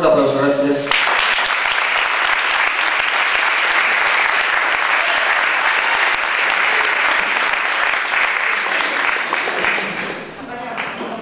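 People applaud loudly in an echoing hall.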